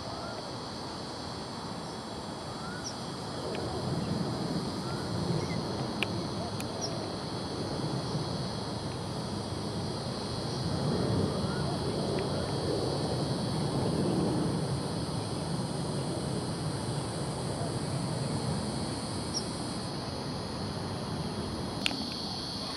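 Wind blows outdoors, rustling through tall grass.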